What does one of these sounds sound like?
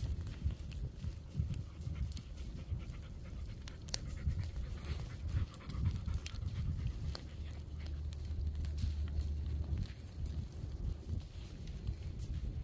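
Dry pine needles crackle and pop as a low fire burns along the ground.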